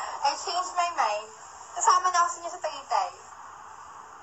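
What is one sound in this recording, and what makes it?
A young woman speaks cheerfully, close by.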